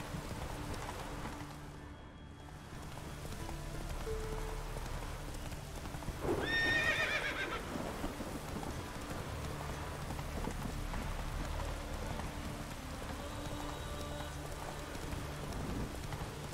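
A horse's hooves thud steadily as it gallops.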